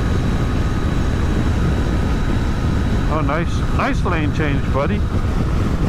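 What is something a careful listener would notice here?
Wind roars loudly against a motorcycle riding at highway speed.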